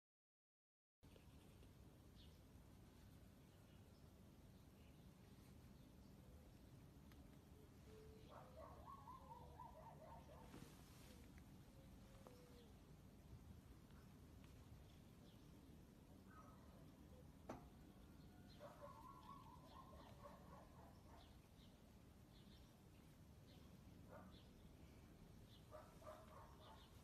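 A cat purrs close by.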